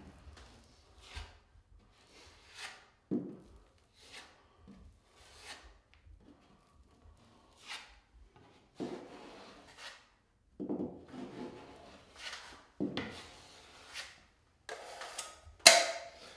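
A filling knife scrapes against a wall in short strokes.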